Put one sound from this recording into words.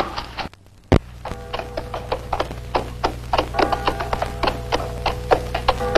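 Horse hooves clop on a dirt road.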